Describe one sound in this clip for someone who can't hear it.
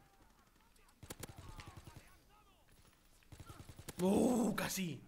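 Rapid gunfire bursts out in quick shots.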